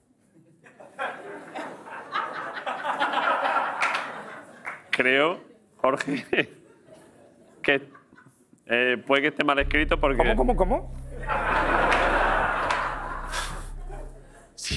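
An audience laughs and applauds in a large room.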